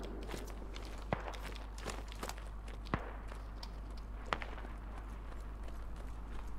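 Footsteps thud on hard ground at a walking pace.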